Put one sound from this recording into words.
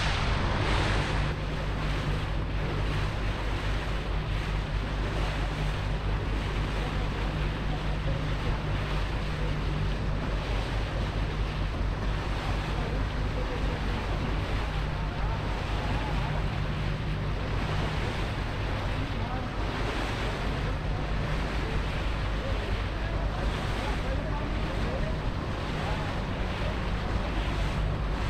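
A bulk carrier's engines hum low and steady close by.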